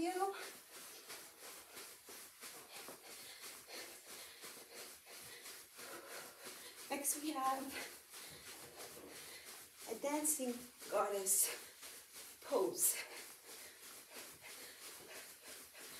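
Feet patter quickly and lightly on a carpeted floor.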